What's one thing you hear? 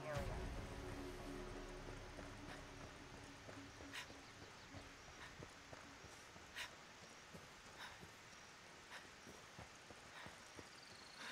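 Footsteps crunch on gravel at a steady walk.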